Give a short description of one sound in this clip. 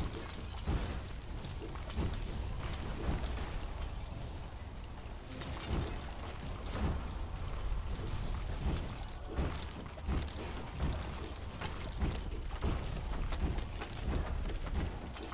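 Magic blasts and fiery explosions burst again and again.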